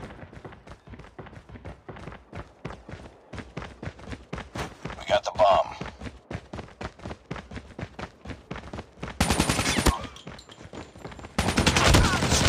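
Footsteps patter quickly and steadily on hard ground.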